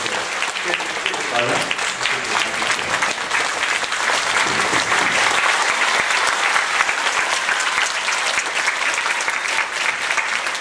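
A large crowd cheers and applauds loudly in an echoing hall.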